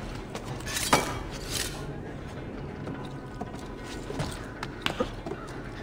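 Hands and feet scrape against stone while climbing.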